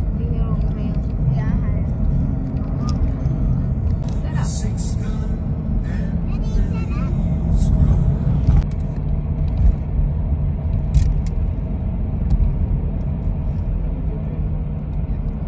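Tyres roll on the road, heard from inside a vehicle.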